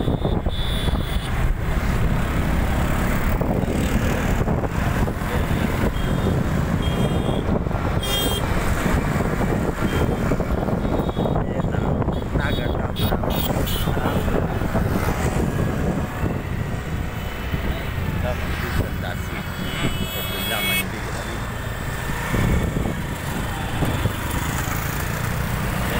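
Wind rushes loudly past a moving vehicle outdoors.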